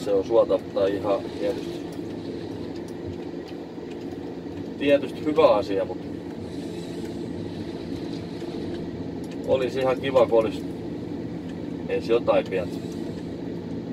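A forest harvester's diesel engine hums steadily, heard from inside the cab.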